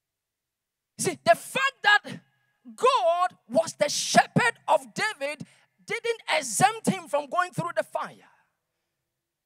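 A man speaks into a microphone with animation, heard through loudspeakers.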